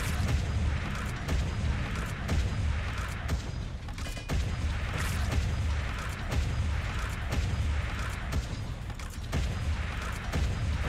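A machine drills into rock with a low, pulsing rumble.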